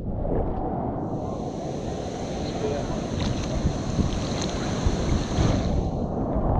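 Foaming surf churns and splashes up close.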